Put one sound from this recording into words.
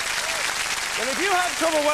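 A middle-aged man speaks cheerfully into a microphone.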